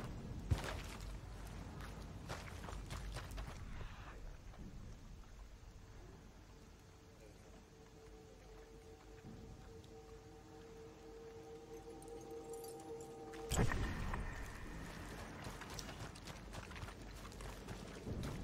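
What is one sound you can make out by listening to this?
Footsteps crunch softly over grass and dirt.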